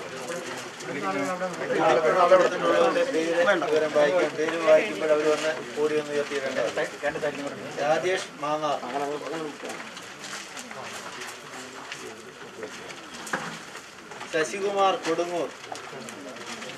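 A man chants prayers aloud nearby.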